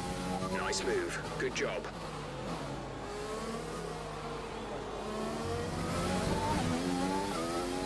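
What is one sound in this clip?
A racing car engine whines at high revs, drops in pitch as it brakes and shifts down, then rises again as it speeds up.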